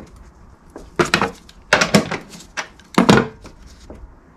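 A metal tool clinks as it is picked up and set down.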